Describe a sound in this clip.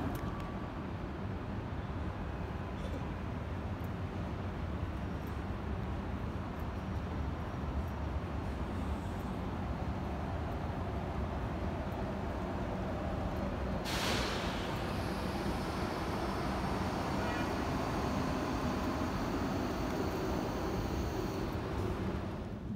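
A stationary train hums steadily in a large echoing hall.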